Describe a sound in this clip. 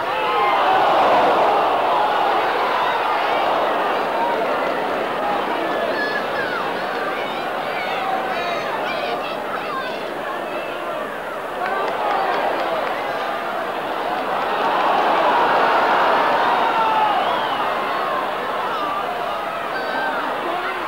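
A large crowd roars and murmurs steadily, swelling louder at times.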